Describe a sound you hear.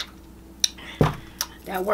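A plastic bottle thumps down onto a table.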